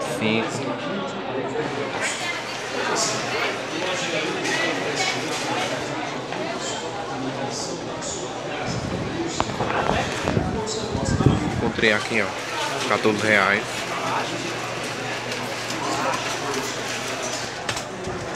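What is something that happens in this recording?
A crowd of people chatters indistinctly in the background.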